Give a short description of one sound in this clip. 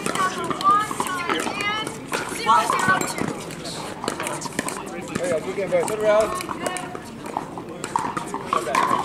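Paddles strike a ball with sharp pops.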